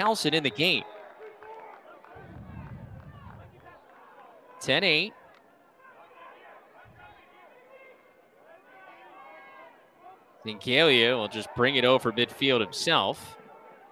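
A crowd of spectators murmurs and calls out nearby.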